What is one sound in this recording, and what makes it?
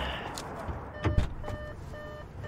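A car door shuts with a thump.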